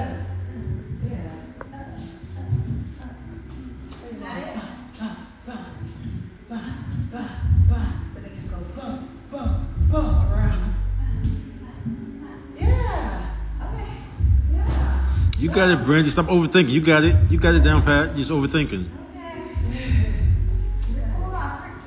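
A woman talks into a microphone, heard through a loudspeaker in an echoing room.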